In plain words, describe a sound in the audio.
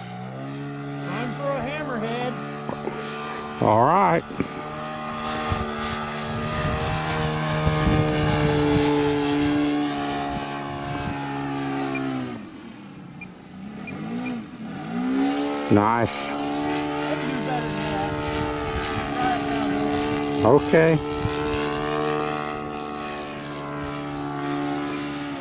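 A small model airplane engine buzzes high overhead, its whine rising and falling as it throttles up and down.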